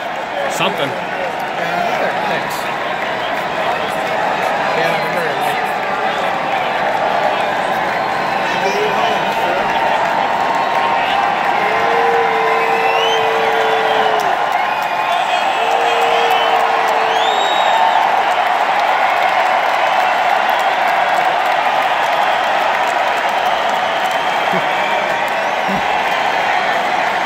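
A large crowd cheers and roars loudly in a huge echoing arena.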